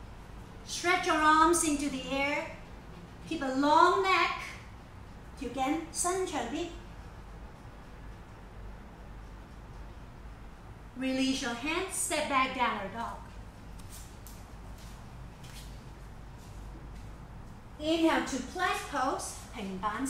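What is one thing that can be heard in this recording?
A woman speaks calmly and clearly in short bursts.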